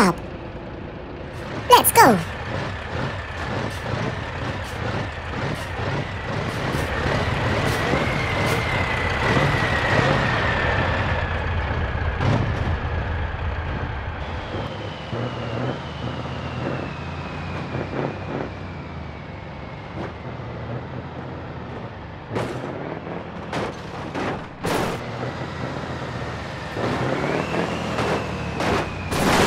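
A truck engine drones steadily, its pitch rising and falling.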